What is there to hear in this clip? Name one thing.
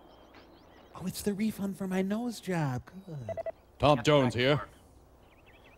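A man talks briefly.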